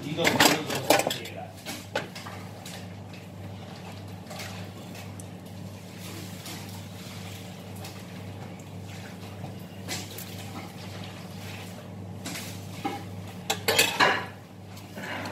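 Metal utensils clatter against a pot.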